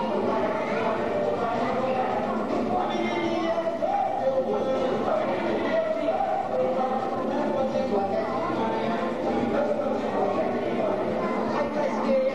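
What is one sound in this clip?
A crowd of adults and children chatter in a room with some echo.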